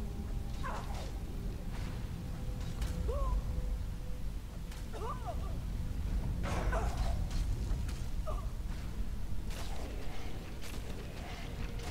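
Weapons clash and bones clatter in a fight.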